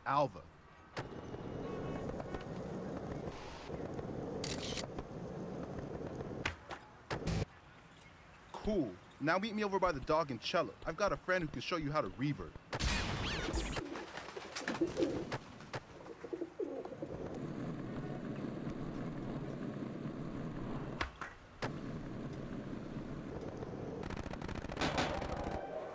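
Skateboard wheels roll steadily over smooth pavement.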